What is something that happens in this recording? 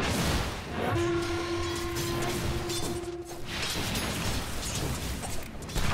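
Video game spell effects whoosh and ring out.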